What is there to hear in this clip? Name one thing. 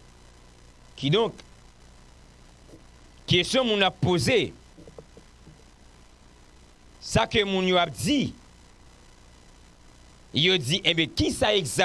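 A young man speaks close into a microphone in short bursts with pauses.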